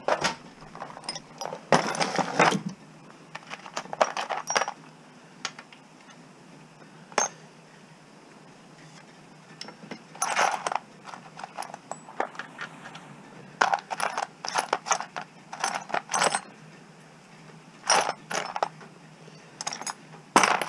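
Small metal tools rattle and clink in a plastic box.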